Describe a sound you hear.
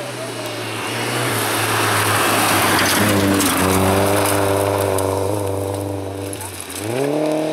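Tyres crunch and spray gravel on a dirt road.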